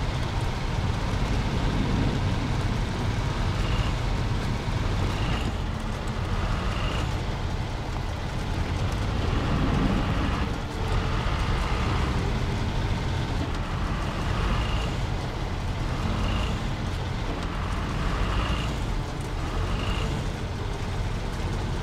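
Tyres crunch through snow.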